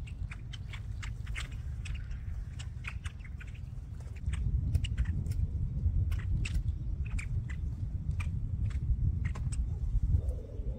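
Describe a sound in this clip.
A flock of blackbirds chirps and chatters outdoors.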